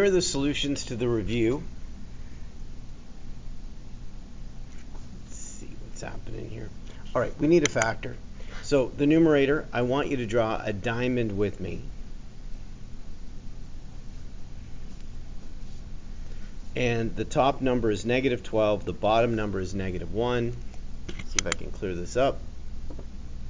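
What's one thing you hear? A middle-aged man talks calmly through a microphone, pausing now and then.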